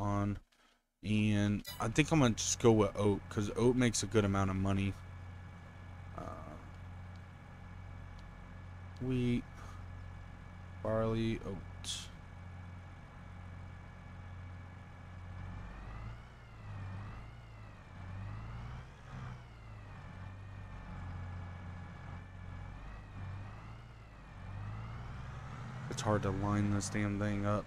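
A tractor engine rumbles steadily, its pitch rising and falling.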